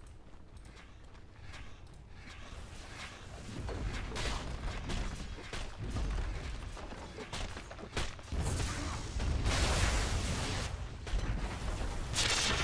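Weapons clash and strike in a fast video game battle.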